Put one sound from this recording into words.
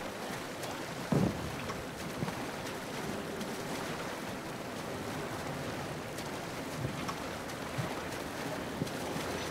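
Water sloshes and splashes as a swimmer moves through it.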